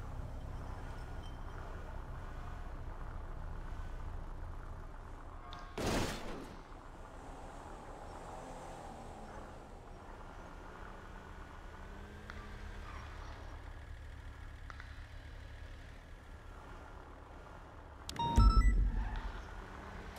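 A car engine hums low and steady as the car drives slowly.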